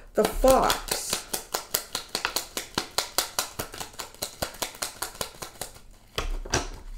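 Small objects click and tap rapidly in a woman's hands.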